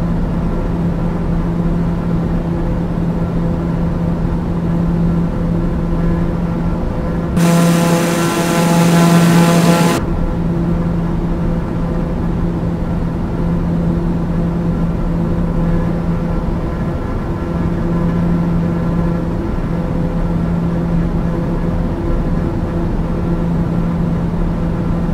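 A jet engine drones steadily inside a small plane in flight.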